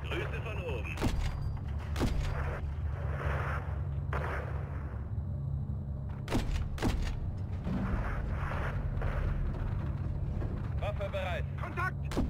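Heavy explosions boom and thud in quick bursts.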